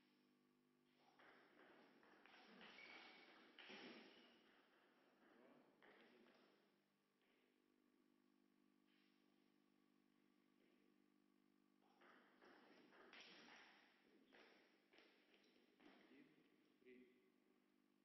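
A table tennis ball clicks back and forth off paddles and the table in quick taps.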